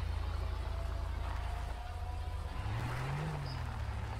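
A car engine hums as a car drives away over dirt.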